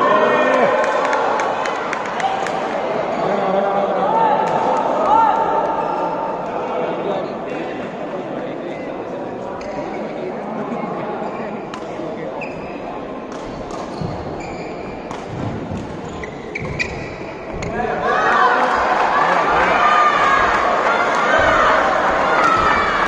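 Badminton rackets strike a shuttlecock back and forth in a large echoing hall.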